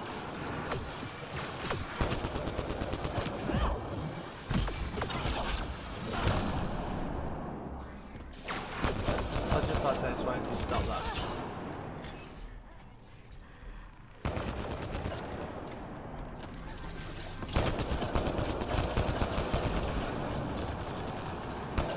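Rapid gunfire and laser shots crackle and pop.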